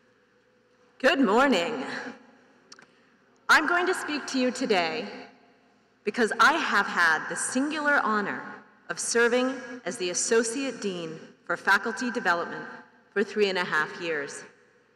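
A woman speaks calmly into a microphone, heard over loudspeakers in a large echoing hall.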